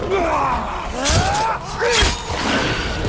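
A blade strikes flesh with sharp, heavy blows.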